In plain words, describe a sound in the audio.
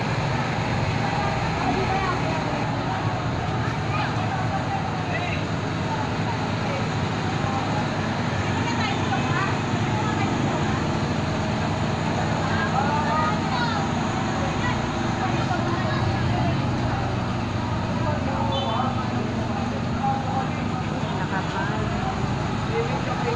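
Rain falls on wet pavement.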